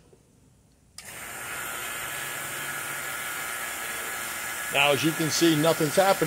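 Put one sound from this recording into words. A vacuum pump starts up and runs with a steady, hissing hum.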